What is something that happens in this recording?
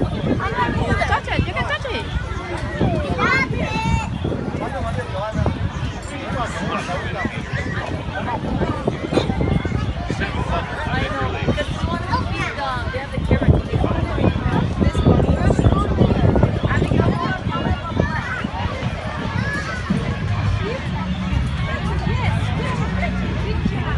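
Children and adults chatter and call out in a lively crowd outdoors.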